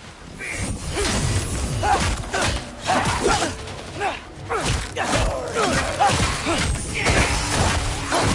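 Swung weapons whoosh through the air.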